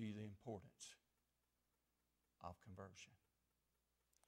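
A middle-aged man speaks calmly through a microphone, pausing between phrases.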